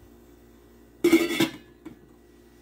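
A metal lid clanks onto a pot.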